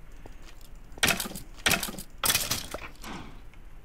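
Sharp hits land in quick succession as a sword strikes a skeleton.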